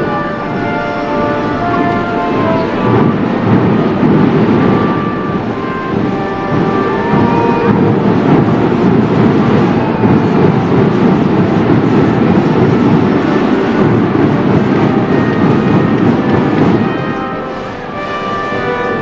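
A large crowd murmurs and claps outdoors.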